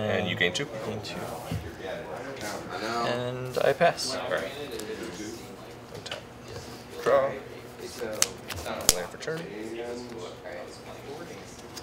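Playing cards slide and tap on a table mat.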